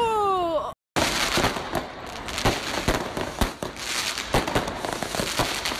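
Fireworks crackle and pop rapidly overhead.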